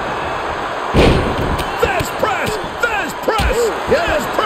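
Bodies slam with heavy thuds onto a wrestling ring mat.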